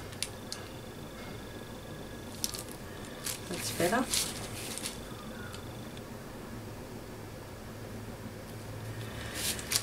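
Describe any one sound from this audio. A plastic tool scrapes and rubs against paper.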